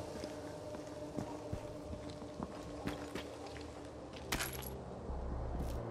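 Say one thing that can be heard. Footsteps crunch over scattered debris.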